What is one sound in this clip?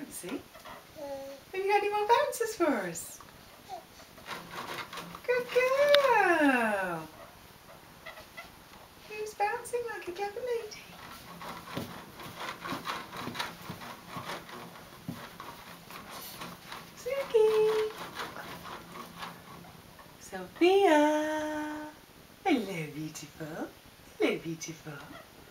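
A baby squeals and babbles happily close by.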